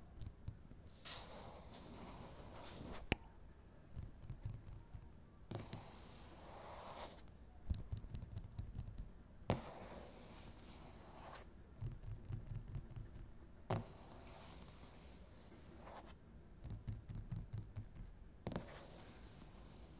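Fingers rub and swish across a smooth surface.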